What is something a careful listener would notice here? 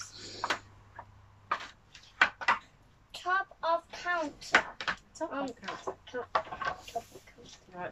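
Wooden blocks clatter and knock together.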